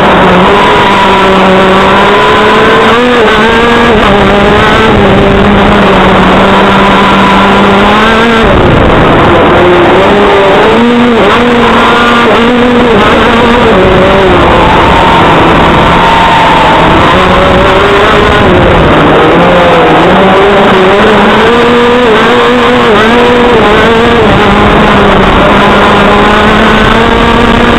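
An engine drones loudly close by, its pitch rising and falling as it revs.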